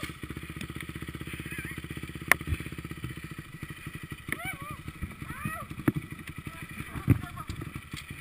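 A dirt bike engine idles close by with a fast, steady putter.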